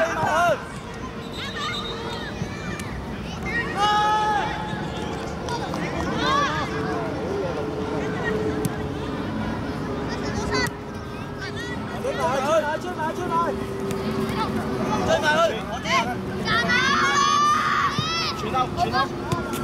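Children shout and call out across an outdoor pitch.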